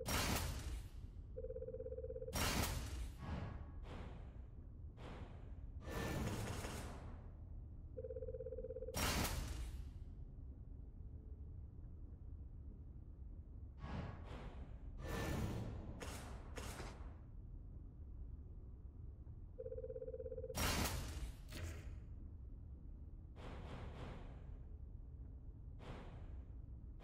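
Whooshing electronic menu sounds swell and fade.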